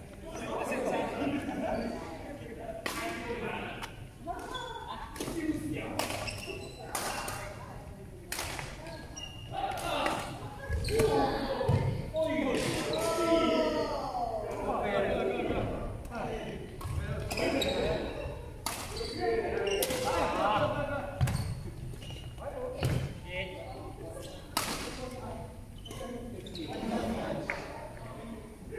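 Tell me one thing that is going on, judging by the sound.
Men talk casually nearby in a large echoing hall.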